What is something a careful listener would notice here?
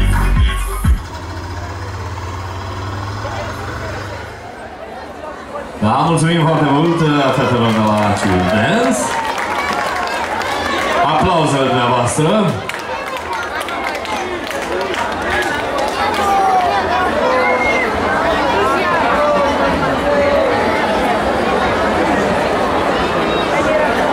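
Loud pop music with singing plays through loudspeakers.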